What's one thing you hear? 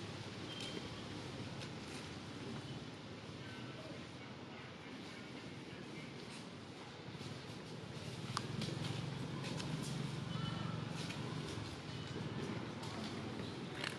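A baby monkey scrambles over dry leaves, rustling them.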